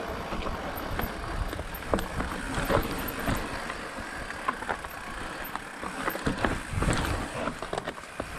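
Knobby tyres crunch over dirt and stones.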